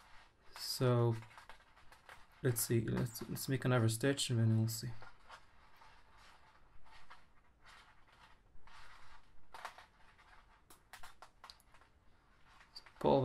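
Plastic strips rustle and crinkle as they are woven and pulled tight.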